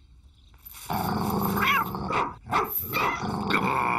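A cat yowls loudly.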